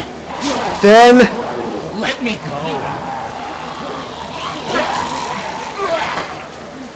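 A man cries out and groans with strain, close by.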